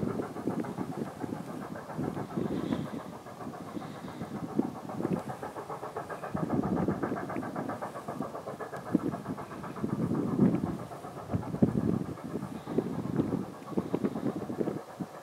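A long freight train rumbles along the tracks.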